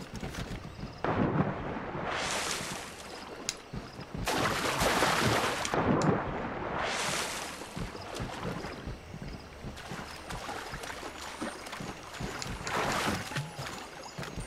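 Water splashes loudly as a figure dives and swims.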